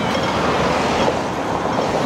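A minibus drives past close by.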